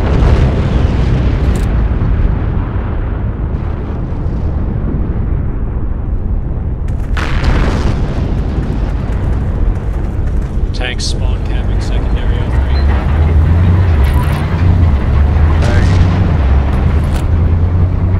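A low battle rumble booms steadily throughout.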